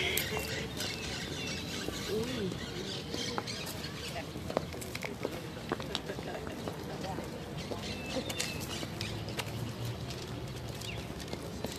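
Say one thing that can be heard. Several women chat and laugh nearby outdoors.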